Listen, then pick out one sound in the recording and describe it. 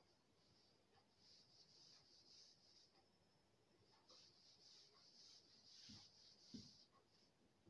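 A duster rubs across a board.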